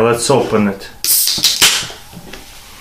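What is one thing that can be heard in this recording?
A can pops open with a sharp hiss.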